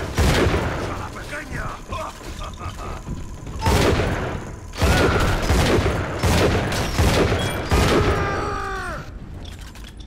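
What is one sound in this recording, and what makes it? Loud gunshots blast in rapid bursts.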